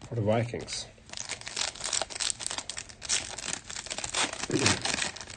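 A foil pack crinkles and tears as hands open it.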